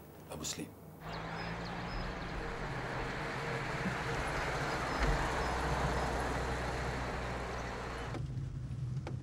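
A car drives along a road outdoors.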